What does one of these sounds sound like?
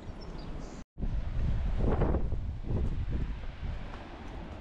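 Footsteps crunch softly on a sandy path.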